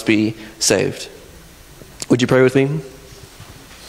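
A man speaks into a microphone in short bursts with pauses.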